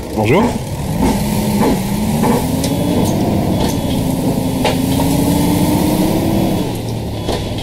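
A bus engine revs up as the bus pulls away, its pitch slowly rising.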